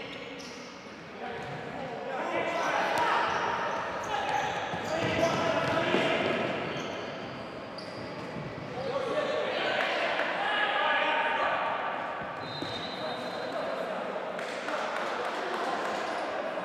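Sneakers squeak on a hard indoor floor.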